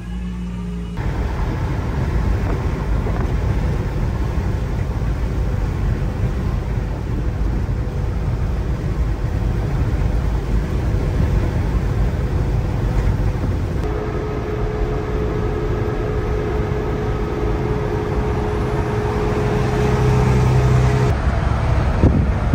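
A truck engine drones steadily, heard from inside the cab.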